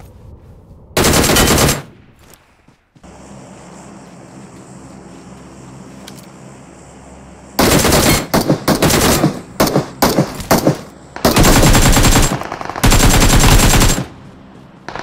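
Rifle gunfire rings out in rapid bursts.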